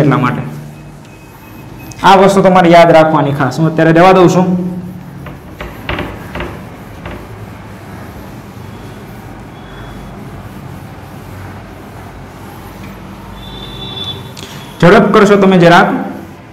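A cloth rubs and wipes across a whiteboard.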